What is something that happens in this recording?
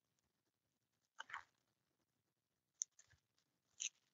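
Backing paper peels off sticky tape with a soft rustle.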